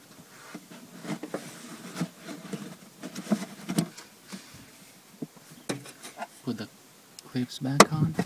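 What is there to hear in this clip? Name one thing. Plastic clicks and knocks as a filter is pushed into place.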